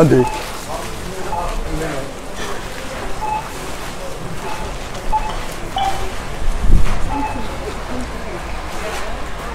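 A checkout scanner beeps several times.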